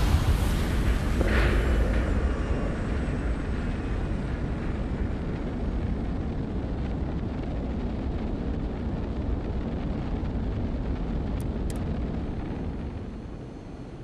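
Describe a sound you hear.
Spaceship engines rumble with a steady low roar.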